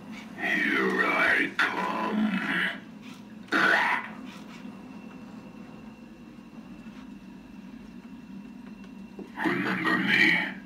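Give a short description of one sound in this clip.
A deep, menacing male voice speaks through a small loudspeaker, in short bursts.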